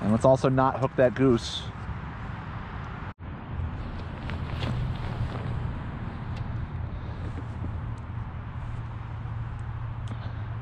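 Water laps softly against a kayak hull.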